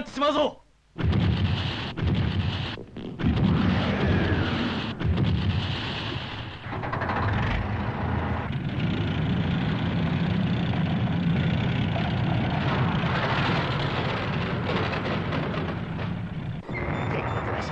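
A heavy vehicle's engine rumbles steadily.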